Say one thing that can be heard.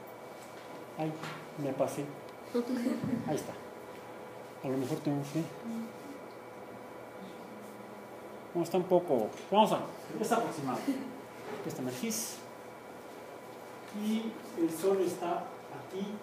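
A middle-aged man speaks calmly, as if lecturing.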